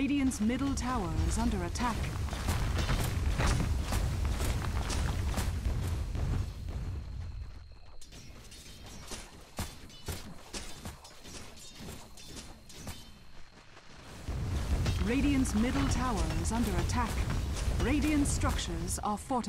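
Fantasy battle sound effects clash and zap.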